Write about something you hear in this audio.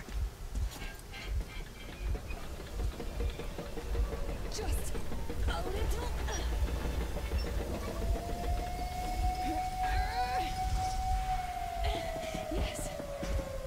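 A metal valve wheel creaks as it turns.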